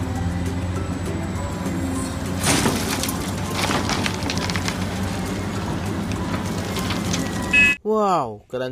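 A large excavator engine rumbles and roars.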